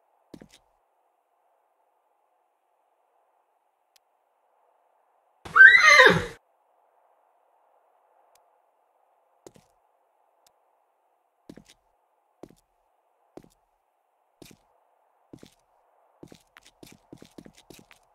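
A horse's hooves clop on a dirt road.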